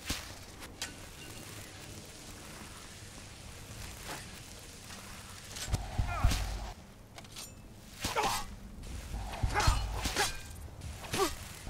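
A magic spell crackles and hums steadily.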